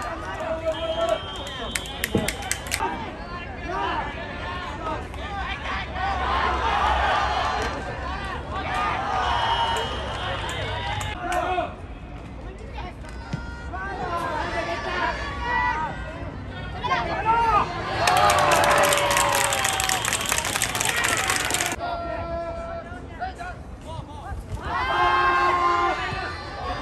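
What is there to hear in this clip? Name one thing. A crowd of spectators cheers and shouts across an open outdoor field.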